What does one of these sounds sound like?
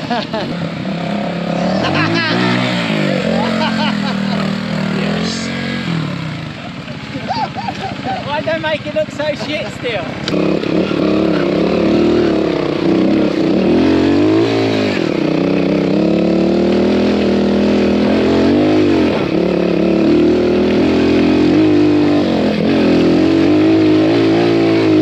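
A trials motorbike engine revs up and down close by.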